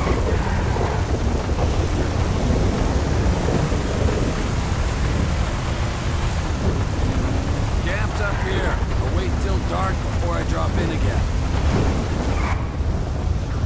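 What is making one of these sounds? Rain hisses steadily outdoors.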